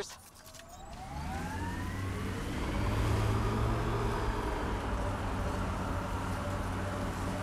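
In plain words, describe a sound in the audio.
A vehicle engine hums steadily, with a whine rising in pitch.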